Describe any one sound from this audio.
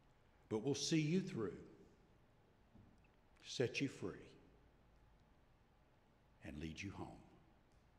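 A man speaks with animation through a microphone in a large echoing hall, in short bursts with pauses.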